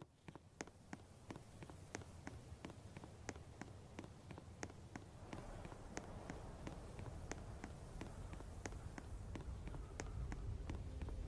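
Quick footsteps run across dry ground.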